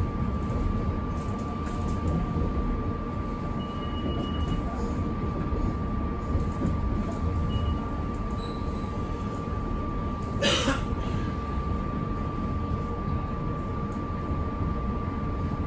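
A train rumbles steadily along the rails, heard from inside the cab.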